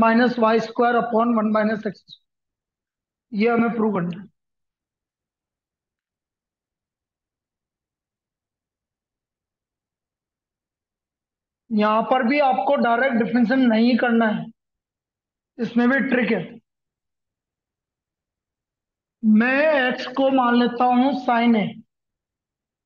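A man speaks calmly and explains, close to the microphone, with long pauses.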